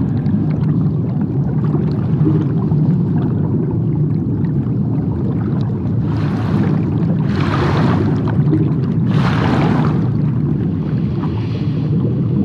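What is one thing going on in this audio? Water rushes and bubbles around a sinking body.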